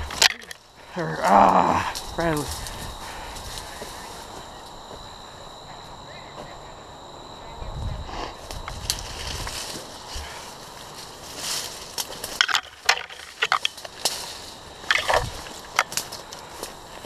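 Branches and leaves brush and rustle against clothing.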